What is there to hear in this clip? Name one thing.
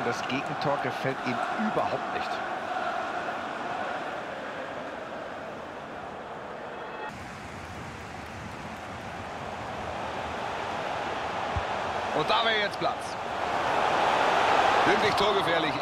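A large stadium crowd roars steadily, swelling louder toward the end.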